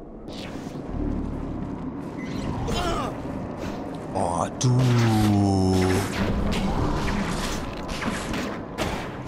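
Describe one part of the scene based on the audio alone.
Quick thuds and whooshes of a fight ring out.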